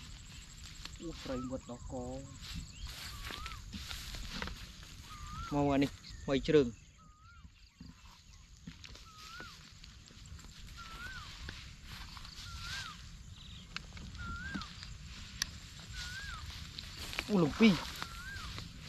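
A man speaks in short bursts nearby.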